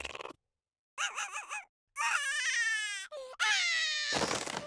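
A small cartoon creature whimpers and whines in a high, wavering voice.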